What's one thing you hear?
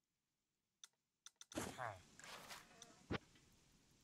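A short game menu sound plays as a new menu opens.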